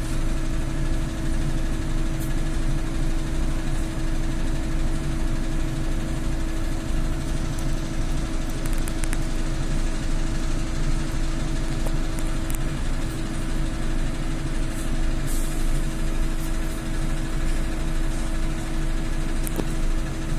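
An electric motor hums steadily inside a trolleybus.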